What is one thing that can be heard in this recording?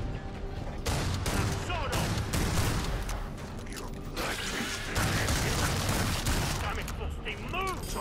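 Gunshots fire in rapid bursts with heavy booms.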